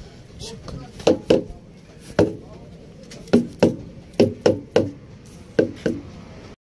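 A wooden stick thumps against a truck tyre several times.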